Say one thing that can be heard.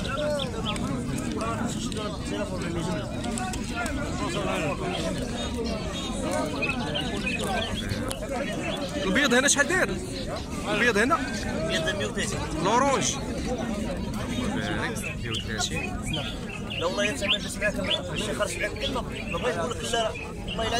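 Many small birds chirp and twitter busily and close by.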